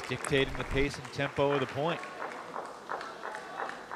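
A ping-pong ball clicks back and forth between paddles and the table.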